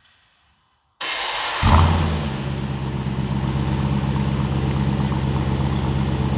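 A car engine starts with a loud roar and settles into a deep, throbbing idle through the exhausts.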